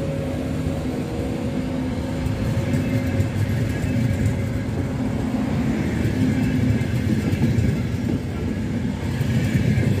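Train wheels clack and squeal on the rails.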